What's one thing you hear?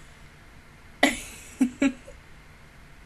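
A young woman laughs in short bursts close to a microphone.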